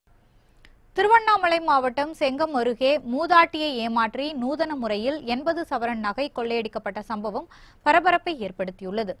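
A young woman reads out the news calmly and clearly into a microphone.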